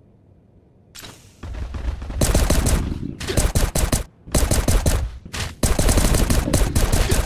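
Loud game fighting sounds burst out in quick, heavy blasts.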